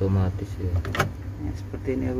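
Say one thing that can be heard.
A plug clicks into a socket.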